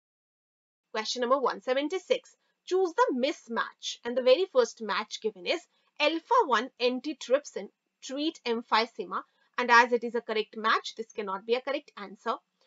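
A young woman speaks calmly and clearly into a microphone, as if teaching.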